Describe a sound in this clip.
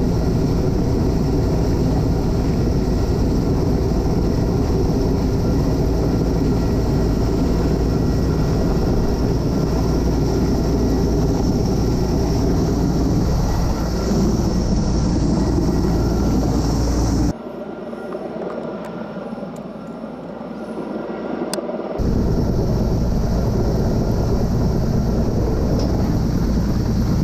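Strong wind rushes past outdoors.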